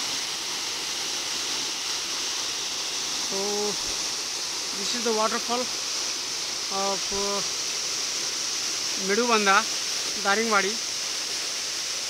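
A waterfall pours and splashes steadily into a pool, loud and close.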